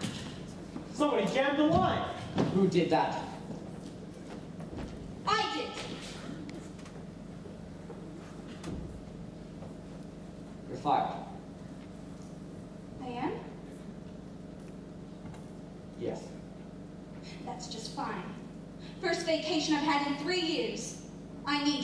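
A young woman speaks with feeling from a stage, echoing in a large hall.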